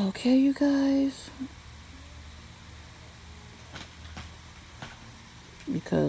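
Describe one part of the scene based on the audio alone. A pencil softly scratches across paper.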